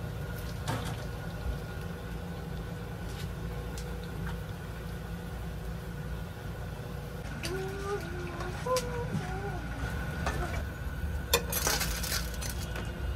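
A metal ladle clinks and scrapes against a pan.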